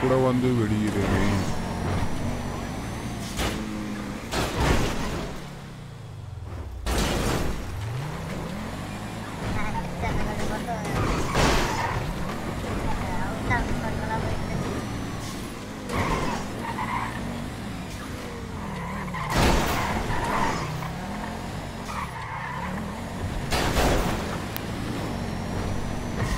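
A car engine roars and revs up and down at high speed.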